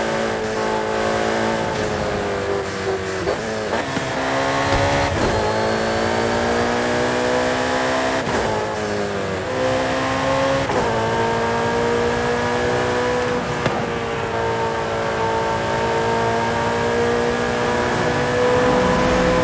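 A sports car engine roars at high revs, dropping and rising in pitch as gears shift.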